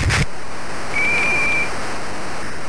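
A short electronic tone sounds.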